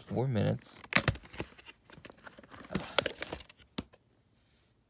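A plastic video tape case clicks and rattles as it is handled.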